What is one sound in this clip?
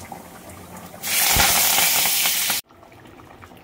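Hot oil sizzles loudly as food drops into it.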